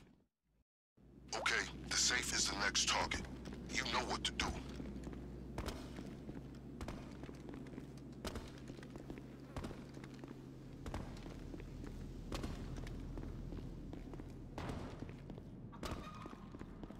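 Heavy footsteps thud as a soldier runs on a hard floor.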